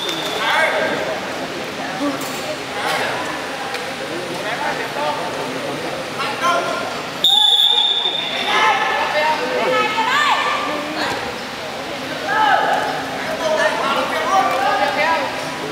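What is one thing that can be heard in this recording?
Voices of men chatter and call out in a large echoing hall.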